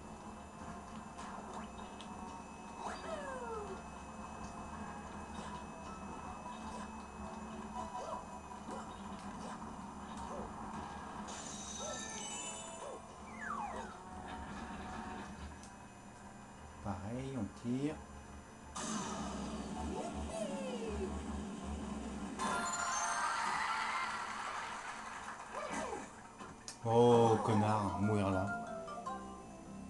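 Upbeat video game music plays through a television speaker.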